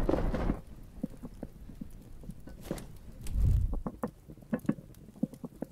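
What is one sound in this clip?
Footsteps crunch on snow and grass.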